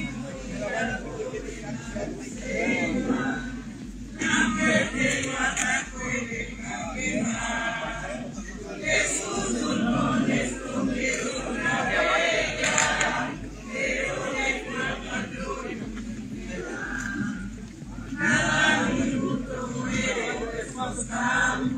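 A large crowd outdoors sings together loudly.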